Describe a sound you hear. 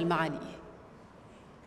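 A young woman speaks briefly through a microphone in a large hall.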